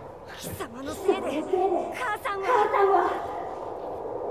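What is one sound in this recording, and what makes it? A young man speaks angrily and close.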